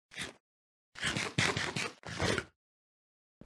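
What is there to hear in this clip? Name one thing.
Food is chewed and munched in quick bursts.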